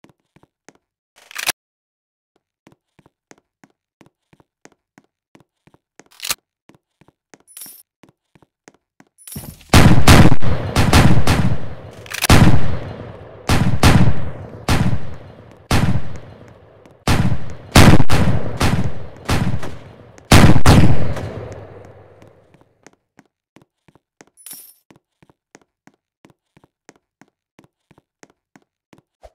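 Quick light footsteps patter steadily on the ground.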